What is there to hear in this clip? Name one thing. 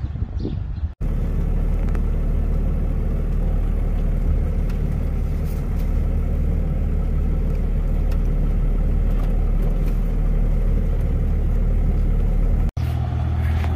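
A Cummins turbo-diesel pickup engine drones while driving, heard from inside the cab.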